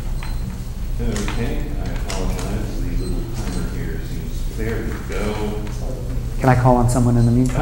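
A man speaks calmly into a microphone in a large room.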